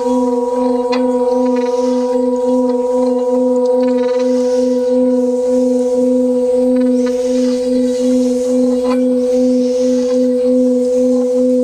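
Water boils and bubbles in a pot.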